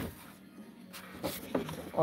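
A cardboard box is slid across a table.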